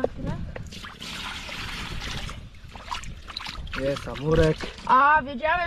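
Water splashes as a fish thrashes in a shallow pool.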